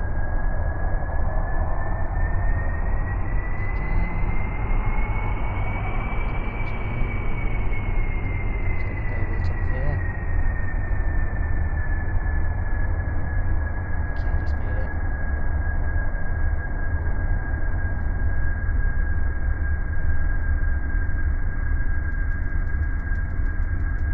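A jet engine roars steadily, with a high whine that rises and then slowly falls.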